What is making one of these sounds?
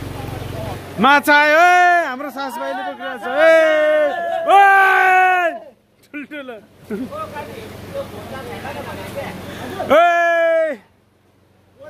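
A young man shouts excitedly close by.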